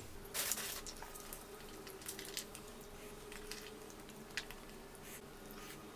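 Fingers sprinkle chopped onion onto a plate with soft pattering.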